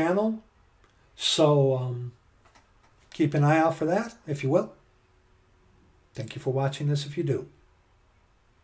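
A middle-aged man talks with animation, close to a microphone, in pauses.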